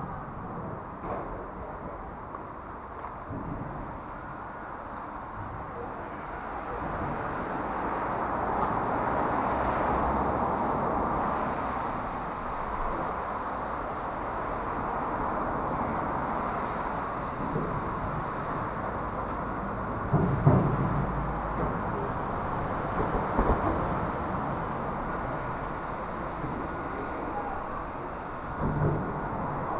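Small plastic tyres crunch and scrape over rough stones and grit.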